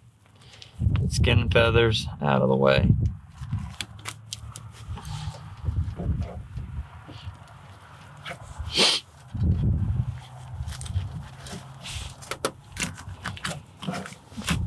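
A knife cuts through a bird's flesh with soft crunches and snips.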